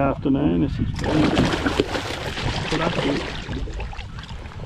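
A fish splashes and thrashes loudly at the water's surface.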